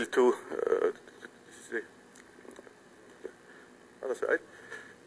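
A man speaks calmly, with a slight echo.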